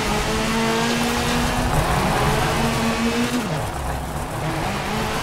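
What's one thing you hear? A rally car engine roars loudly, its pitch rising and dropping as it shifts gears.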